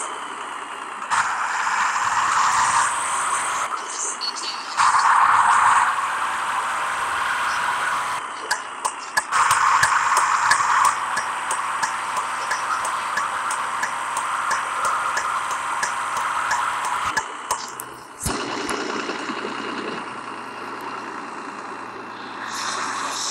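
A school bus engine hums while driving.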